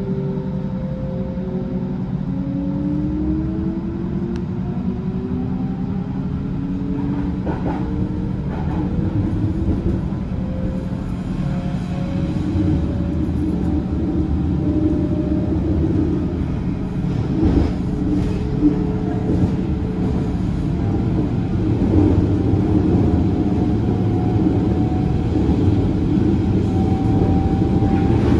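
Train wheels rumble steadily on the rails.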